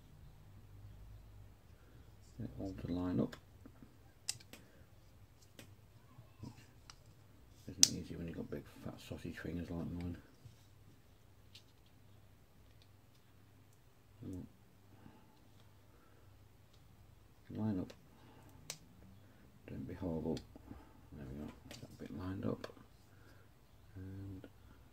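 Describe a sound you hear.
Small plastic parts click and tap softly as they are handled.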